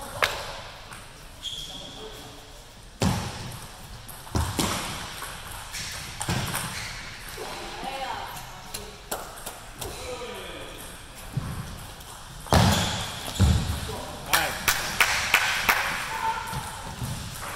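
Table tennis balls click sharply against paddles and tables.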